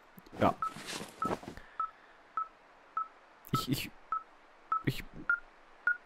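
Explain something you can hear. A small electronic device beeps in a steady, evenly spaced pattern.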